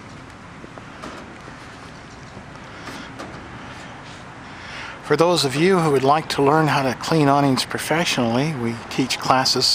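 A brush scrubs an awning.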